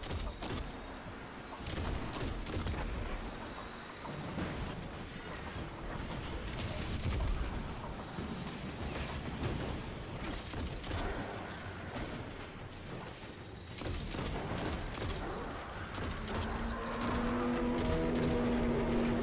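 Gunfire from a game rifle cracks in rapid bursts.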